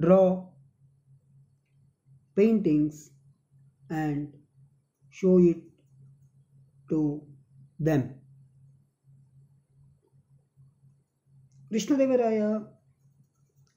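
A man speaks slowly in short phrases through a microphone, with pauses between them.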